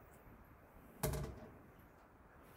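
A plastic colander knocks down onto a counter.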